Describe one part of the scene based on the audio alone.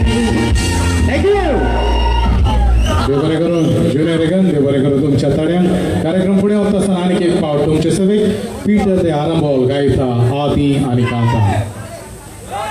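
A man sings loudly through a microphone over loudspeakers.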